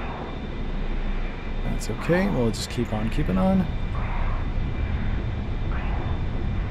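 A jet engine rumbles steadily in flight.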